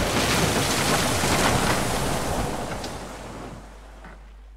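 Flames crackle and roar on a burning ship.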